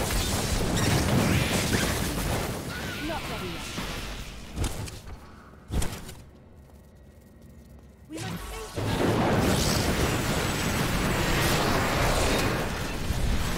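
Game spells crackle and explode in rapid bursts.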